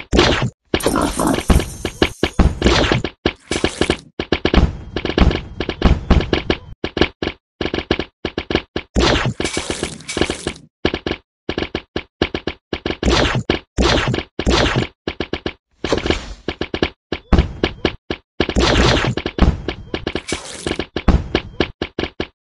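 Cartoon battle effects pop, thud and clatter in rapid bursts.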